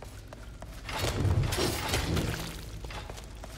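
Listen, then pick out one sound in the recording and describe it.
Flames burst with a loud roar.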